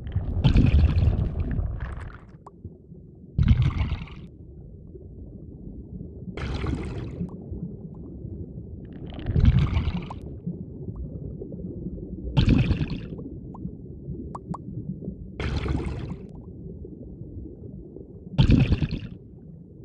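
A low underwater hum drones steadily as a small submarine glides.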